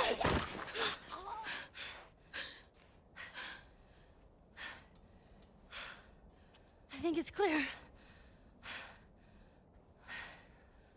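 A girl gasps and breathes heavily in fear.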